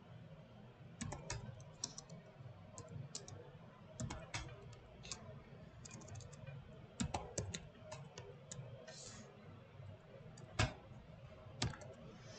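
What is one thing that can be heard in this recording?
Keys click on a computer keyboard in short bursts of typing.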